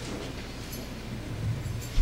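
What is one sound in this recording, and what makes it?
A guitar is strummed softly.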